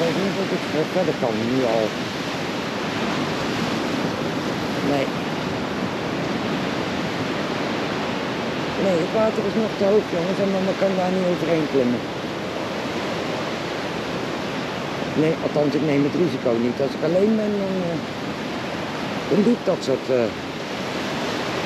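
Waves wash steadily onto the shore and rocks.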